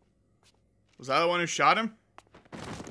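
A man speaks in a low, firm voice.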